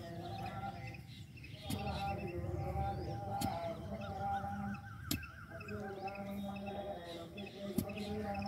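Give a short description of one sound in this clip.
A hoe thuds into soil.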